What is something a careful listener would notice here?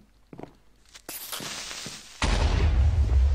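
A creature hisses briefly.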